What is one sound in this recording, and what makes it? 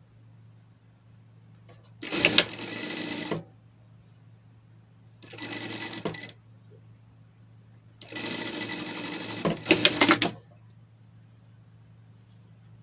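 A low hum from a sewing machine motor goes on steadily.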